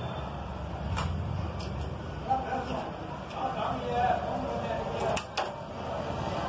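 Metal tools clink and tap against an engine.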